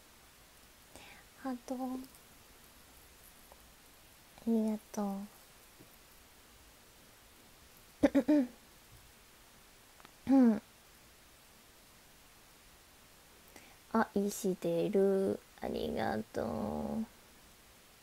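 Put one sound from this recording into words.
A young woman talks in short bursts, close to the microphone.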